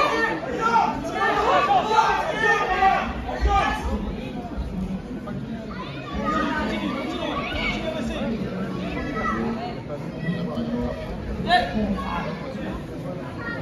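Adult men shout with animation in a large echoing hall.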